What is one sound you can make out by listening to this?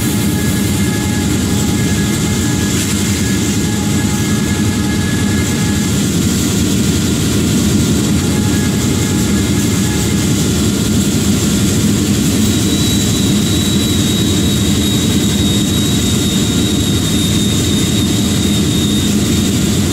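Train wheels clatter and roll along the rails.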